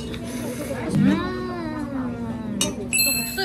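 A young woman hums with pleasure.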